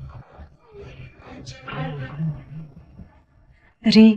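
A man speaks calmly in a low voice close by.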